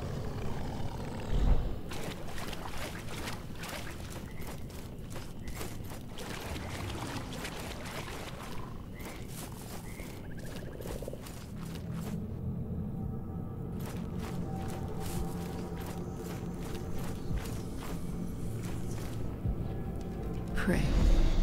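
Footsteps tread on stone in an echoing space.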